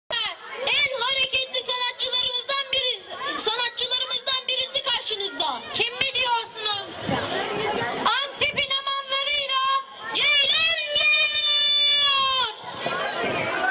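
A young girl speaks with animation through a microphone and loudspeaker.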